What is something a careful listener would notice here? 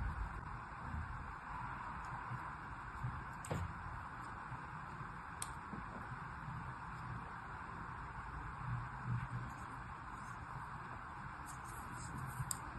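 Kinetic sand crumbles and rustles softly between fingers.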